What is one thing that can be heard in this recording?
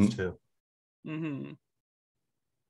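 A second young man speaks briefly over an online call.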